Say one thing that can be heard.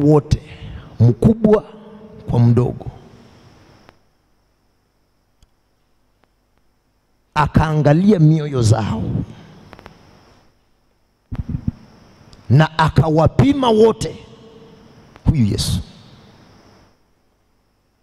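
A man preaches forcefully into a microphone in an echoing hall, pausing between phrases.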